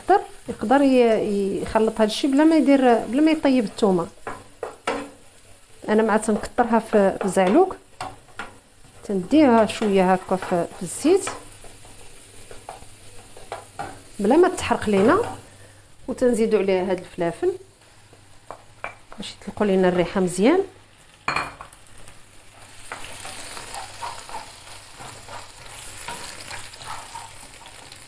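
A wooden spatula scrapes and stirs in a pan.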